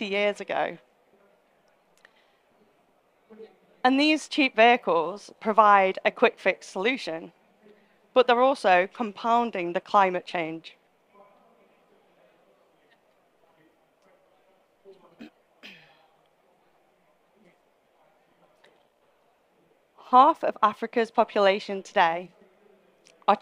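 A woman speaks calmly into a microphone to an audience, with pauses between phrases.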